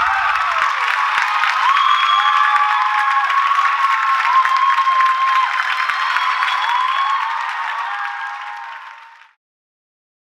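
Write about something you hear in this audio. An audience cheers loudly.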